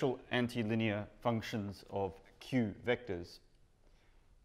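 A man speaks clearly and calmly into a microphone.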